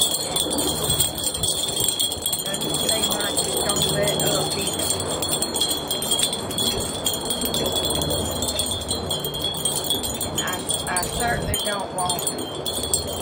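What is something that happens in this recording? Small objects click and rustle softly under hands at work.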